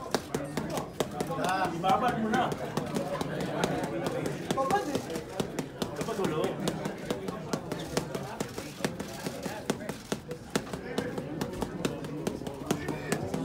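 Boxing gloves smack rapidly against padded mitts.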